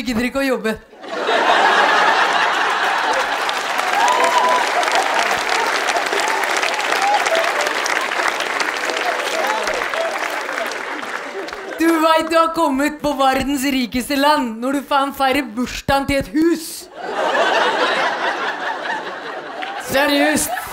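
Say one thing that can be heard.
A large audience laughs loudly.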